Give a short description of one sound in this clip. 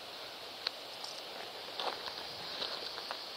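Footsteps crunch on loose gravel.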